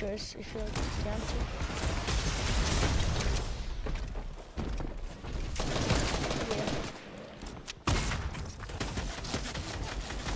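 Gunshots crack sharply, one after another.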